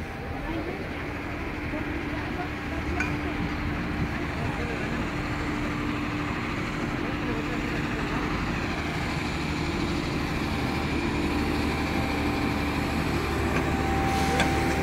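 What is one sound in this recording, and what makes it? A diesel truck engine idles steadily nearby.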